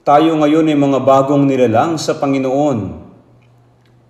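An elderly man speaks calmly and firmly into a microphone.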